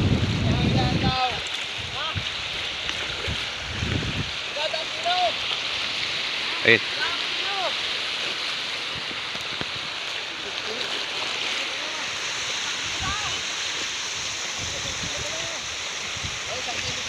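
Men talk to each other nearby outdoors.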